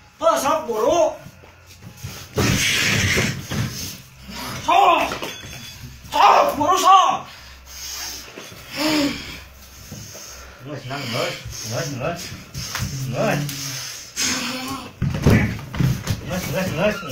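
Young men shout and yell excitedly nearby.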